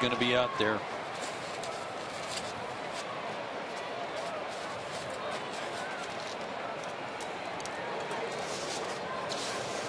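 A large crowd murmurs and chatters steadily in an open stadium.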